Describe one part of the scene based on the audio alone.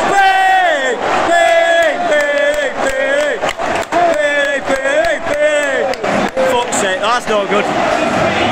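Fans clap their hands in rhythm nearby.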